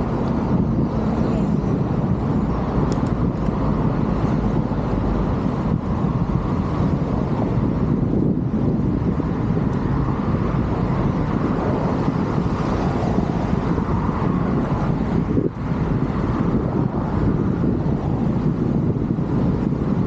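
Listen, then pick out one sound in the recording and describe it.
Traffic passes by on a nearby road.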